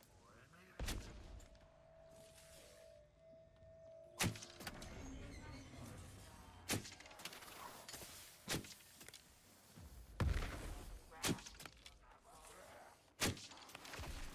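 A bowstring snaps sharply as arrows are loosed.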